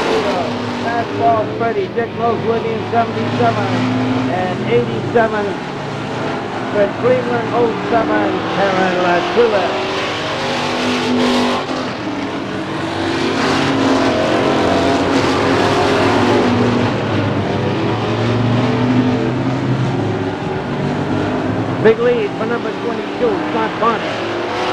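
A race car engine roars loudly as the car speeds past.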